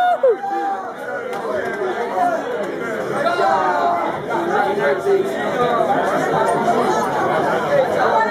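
A crowd of young people chatters and calls out nearby.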